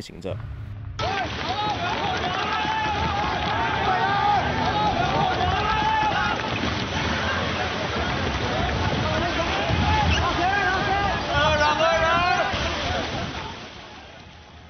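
Men shout to one another outdoors.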